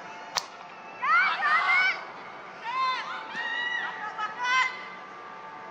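Young women shout excitedly to one another outdoors.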